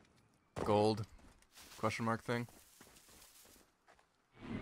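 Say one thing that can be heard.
Tall grass rustles as someone walks through it.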